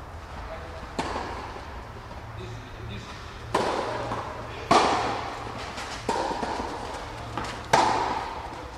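Tennis balls are struck with rackets, echoing in a large hall.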